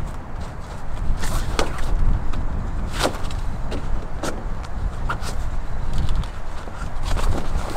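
A foam pad crinkles and creaks as it is handled.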